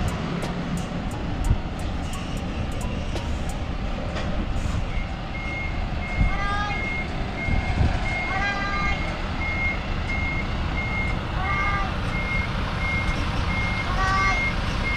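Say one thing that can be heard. A bus engine rumbles as it slowly reverses.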